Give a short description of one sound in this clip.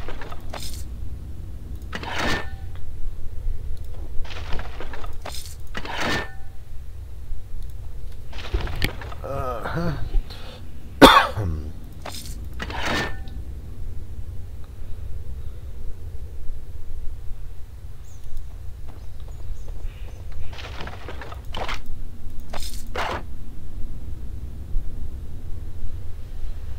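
A middle-aged man talks casually into a close microphone, in short bursts with pauses.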